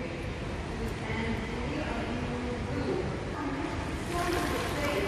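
Water splashes as swimmers kick and paddle.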